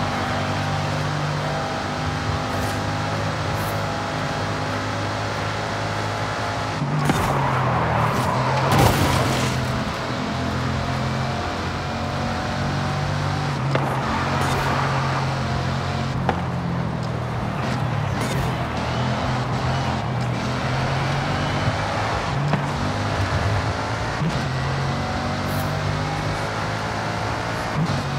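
A powerful sports car engine roars steadily at high speed, its pitch rising and falling with gear changes.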